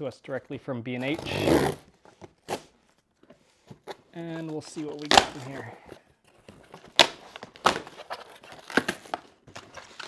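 Packing tape rips off cardboard with sharp tearing sounds.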